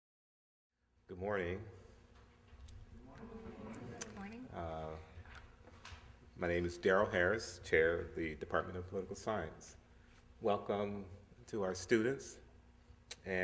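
A man speaks calmly into a microphone in a large room with a slight echo.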